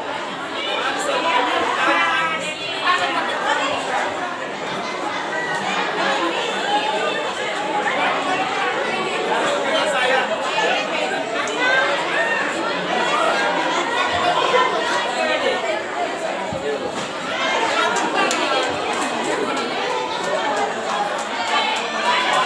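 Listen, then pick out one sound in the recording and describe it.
A group of young girls sings and chants together loudly outdoors.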